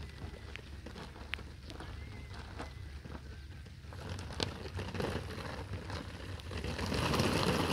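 Plastic sheeting crinkles and rustles under a person's hands and feet.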